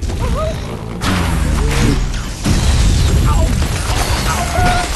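Wooden blocks crash and tumble down.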